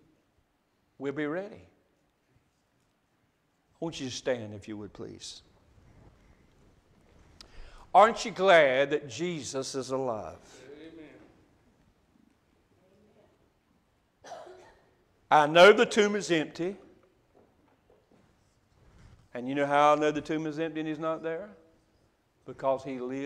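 A middle-aged man speaks calmly in bursts through a microphone in an echoing hall.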